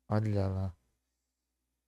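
A young man speaks briefly through a headset microphone over an online call.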